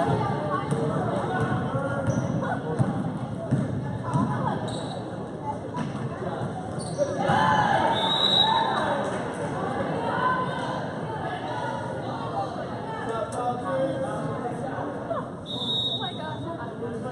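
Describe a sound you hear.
Basketball sneakers squeak sharply on a gym floor.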